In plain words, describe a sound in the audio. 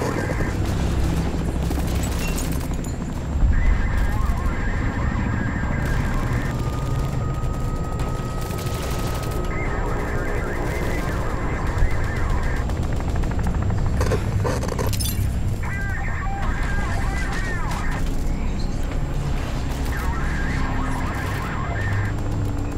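A handheld radio device crackles with electronic warbling tones.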